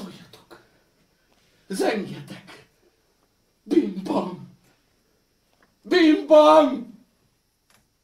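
A middle-aged man declaims loudly and dramatically.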